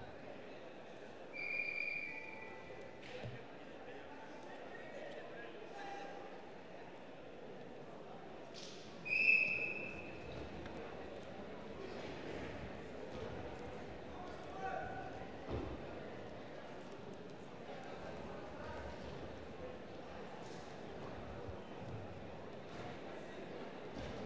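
Wrestlers' feet scuff and thud on a mat.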